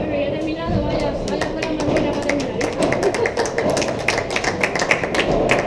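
Paddles strike a ball with sharp pops in an echoing hall.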